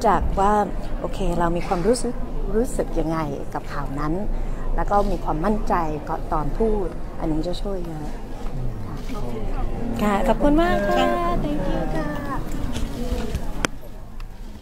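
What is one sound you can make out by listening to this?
A woman speaks with animation into microphones close by.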